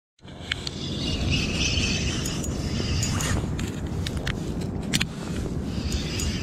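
A fishing reel clicks and whirs as the line is wound in.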